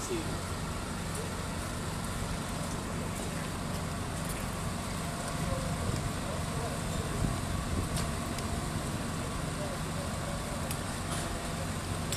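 Water sprays from a fire hose.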